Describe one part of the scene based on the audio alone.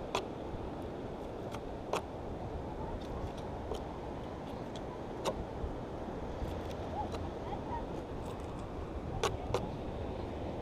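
A knife taps and scrapes on a wooden board.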